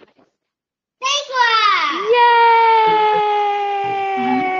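A young woman cheers in a long, drawn-out high voice over an online call.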